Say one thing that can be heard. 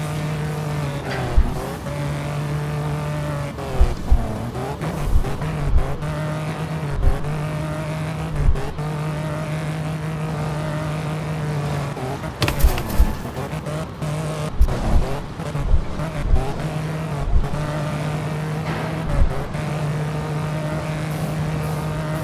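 A racing car engine roars steadily, its pitch shifting with gear changes.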